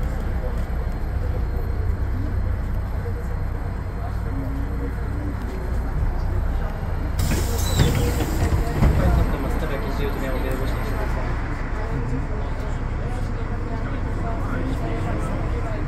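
A tram motor hums and rumbles steadily while the tram rolls along its rails.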